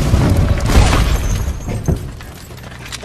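A loud blast roars and rumbles.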